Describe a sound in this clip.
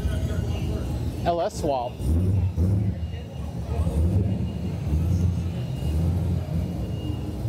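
A car engine revs loudly in an echoing underground garage.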